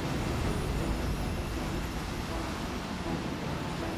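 Rocket engines roar steadily.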